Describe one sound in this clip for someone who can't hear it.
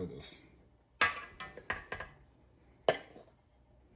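A metal spoon taps against a mixing bowl.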